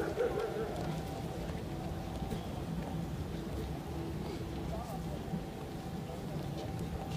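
A crowd of men murmurs and chatters outdoors nearby.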